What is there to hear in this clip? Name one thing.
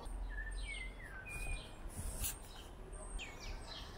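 A paintbrush scrapes against the rim of a paint tin.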